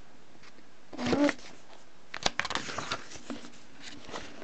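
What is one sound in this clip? Paper pages rustle as a book is handled.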